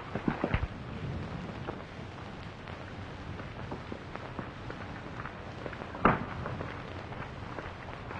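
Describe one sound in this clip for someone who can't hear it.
Footsteps crunch on dirt.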